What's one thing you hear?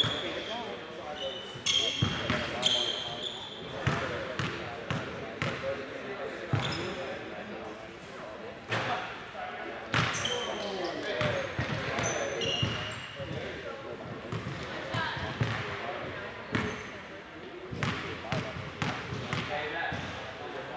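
Young men talk and call out across an echoing gym.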